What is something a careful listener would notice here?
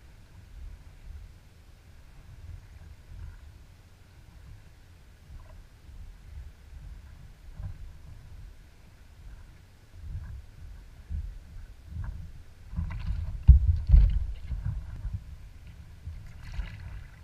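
Small waves lap and splash against a kayak's hull.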